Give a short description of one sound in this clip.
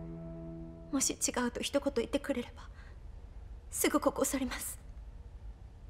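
A young woman speaks firmly and with feeling, close by.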